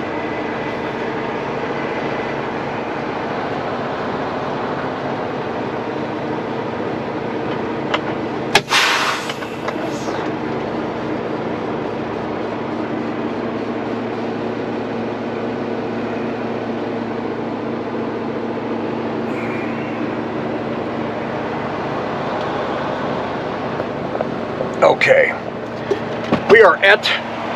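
A truck engine idles steadily with a low hum.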